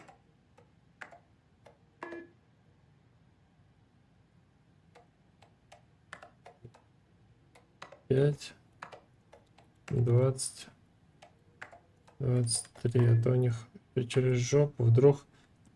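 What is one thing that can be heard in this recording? Keypad buttons click softly as a code is punched in.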